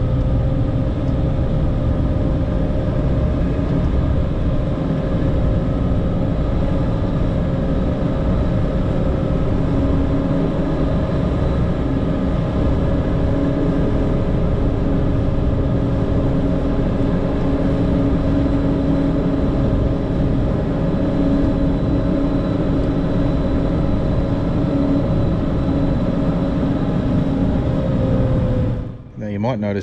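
A heavy diesel engine rumbles steadily from inside a cab.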